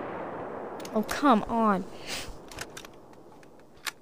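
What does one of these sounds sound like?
A rifle bolt clacks as rounds are loaded.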